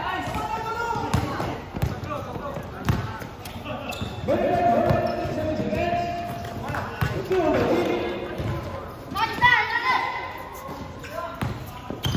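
Young people shout and call out across an open court.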